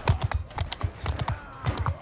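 A crowd of men shouts in battle nearby.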